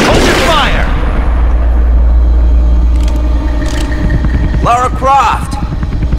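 A helicopter engine hums with a low, steady drone.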